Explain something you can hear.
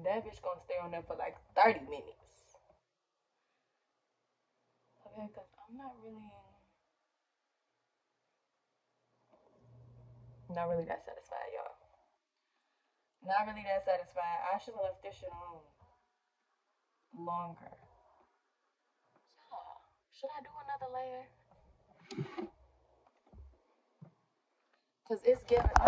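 A young woman talks casually and close to the microphone, in short bursts with pauses.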